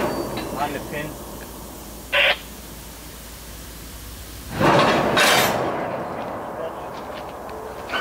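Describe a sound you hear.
Metal clanks as a railcar coupler is handled.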